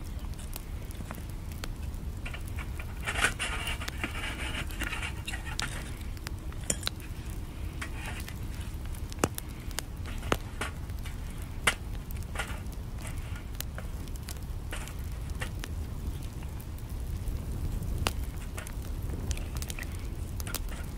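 A wood fire crackles and pops in a small stove.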